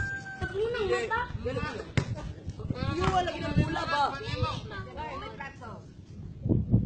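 Children talk and shout excitedly outdoors.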